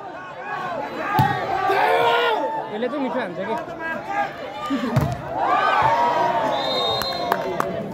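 A large outdoor crowd cheers and shouts excitedly.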